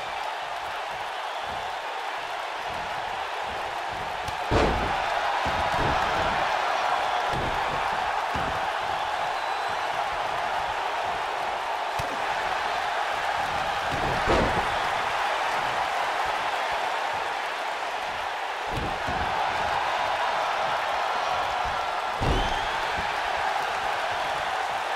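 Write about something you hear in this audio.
A crowd cheers steadily.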